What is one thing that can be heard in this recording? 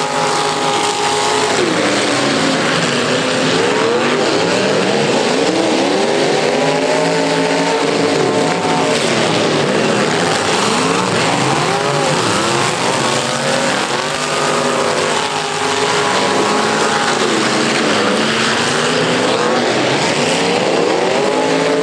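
Several engines roar and rev loudly outdoors.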